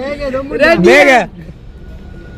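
Young men chant together loudly, close by.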